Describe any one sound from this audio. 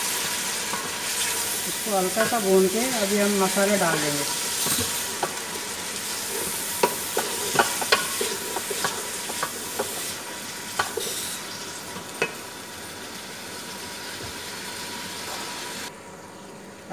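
Food sizzles loudly in a hot pot.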